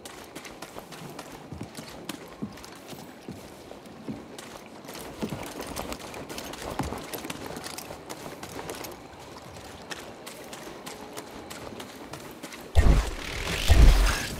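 Footsteps patter on dirt and rock.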